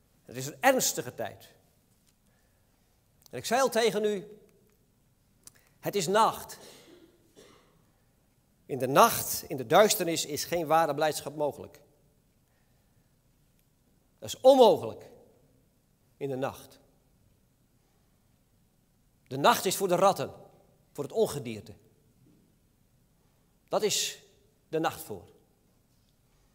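A middle-aged man speaks calmly through a microphone in short phrases with pauses, in a reverberant hall.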